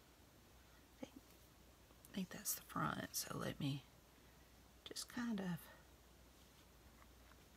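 Hands handle lace and paper with a soft rustle.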